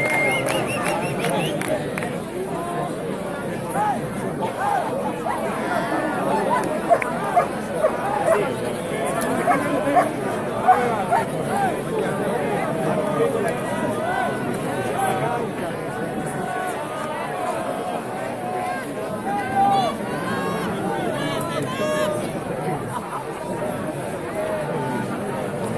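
A large outdoor crowd of men and women chants and shouts together.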